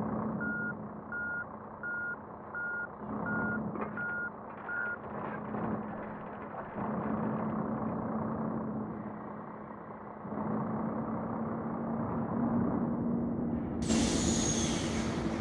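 A truck engine idles and rumbles steadily.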